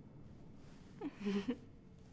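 A young woman giggles softly nearby.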